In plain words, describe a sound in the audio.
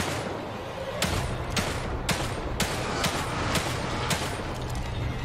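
Pistol shots ring out in quick succession.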